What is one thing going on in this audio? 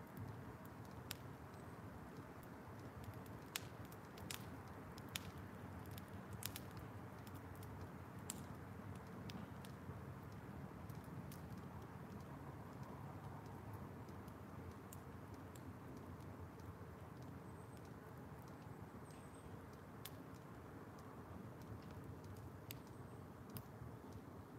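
A fire crackles and pops in a metal barrel.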